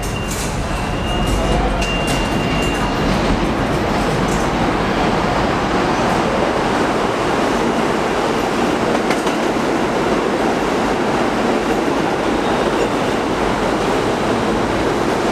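A subway train rumbles loudly past, echoing through the underground station.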